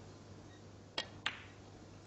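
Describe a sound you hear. A cue tip strikes a ball with a sharp tap.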